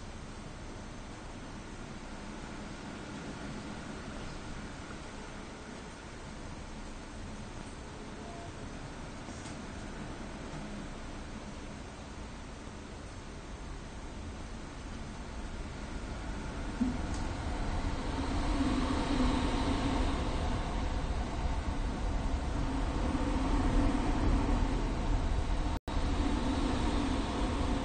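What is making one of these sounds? A train's engine hums steadily.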